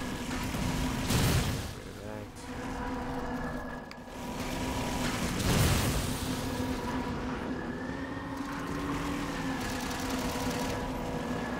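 Energy weapons fire with loud bursts.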